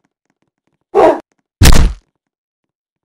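A bat strikes with a heavy thud.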